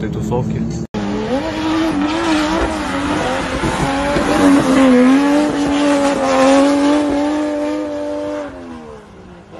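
A car engine screams steadily at high revs as cars drift.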